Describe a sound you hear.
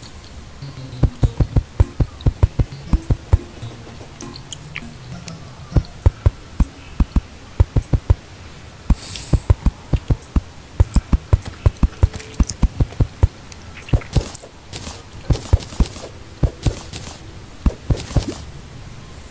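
A pickaxe chips at stone in quick, repeated knocks.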